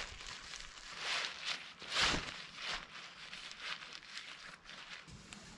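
Tarp fabric rustles and crinkles as it is pulled and handled.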